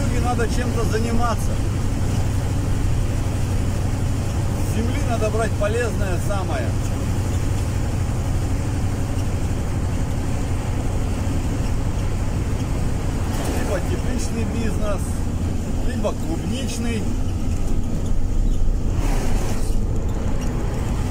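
Tyres roll on smooth pavement.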